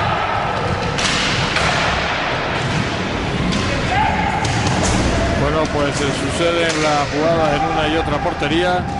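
Hockey sticks clack against a ball and against each other.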